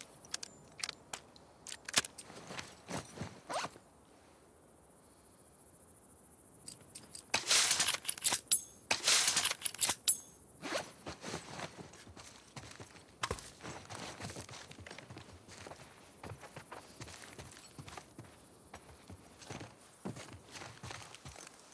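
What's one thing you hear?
Footsteps creak and tap on a wooden floor.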